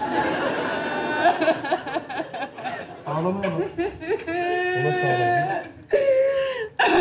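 A young man speaks on a stage.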